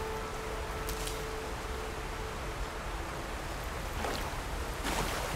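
Footsteps crunch over grass and rock.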